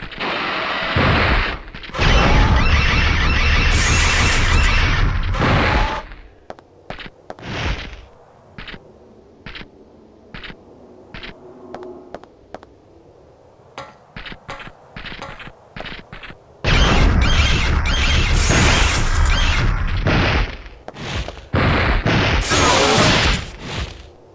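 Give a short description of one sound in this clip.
Game weapons fire in loud roaring bursts.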